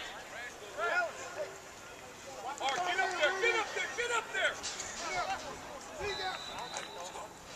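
Several men and boys shout and call out with excitement nearby, outdoors.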